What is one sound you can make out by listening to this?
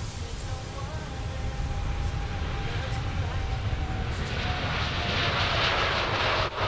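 Jet engines roar loudly as an airliner speeds down a runway, growing louder.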